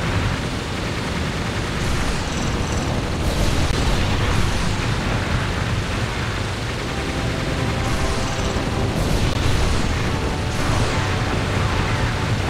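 Engines roar steadily.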